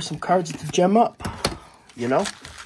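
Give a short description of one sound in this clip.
A hand handles plastic card packaging with a light rustle and clicks.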